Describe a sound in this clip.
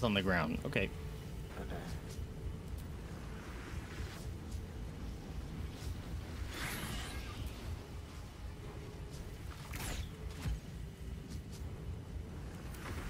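Spells and blows burst in a fantasy battle.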